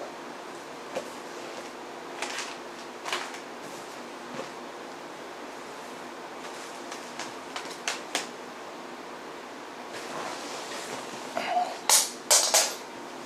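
A man fumbles with something close by, with soft knocks and rustles.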